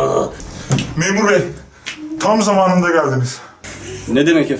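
A young man cries out in surprise nearby.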